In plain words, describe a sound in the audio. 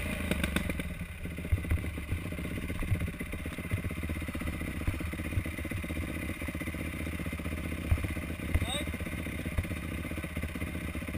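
A dirt bike engine idles close by with a steady, rapid putter.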